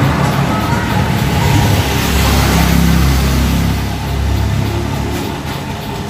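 A van engine revs up loudly, then settles.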